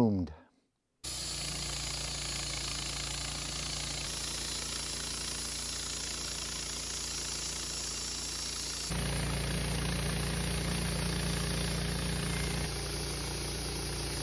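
A portable band sawmill cuts through a Douglas fir log.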